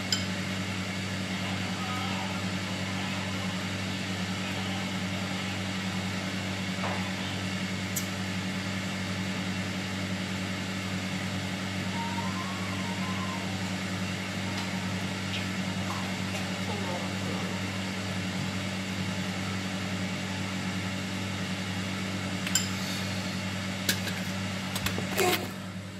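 An exhaust fan hums steadily.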